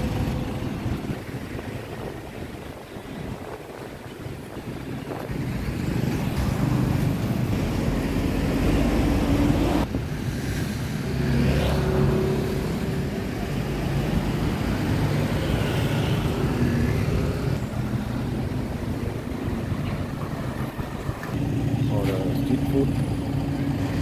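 Traffic hums along a street.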